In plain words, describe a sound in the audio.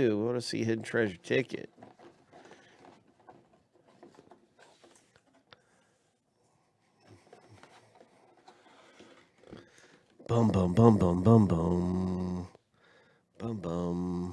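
A cardboard box rustles and scrapes as hands turn it.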